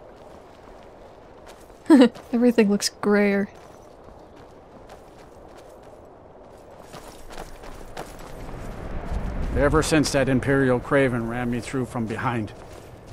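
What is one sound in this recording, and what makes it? Footsteps crunch over stone and snow.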